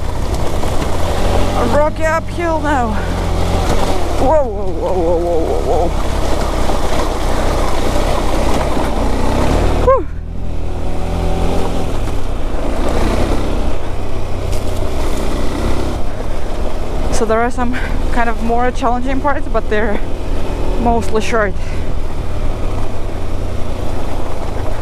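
A motorcycle engine hums steadily at low speed.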